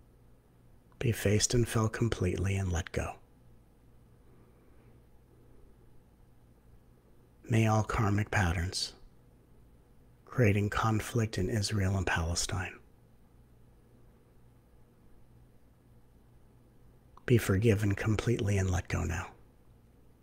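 A middle-aged man speaks calmly into a close microphone, in short bursts with pauses.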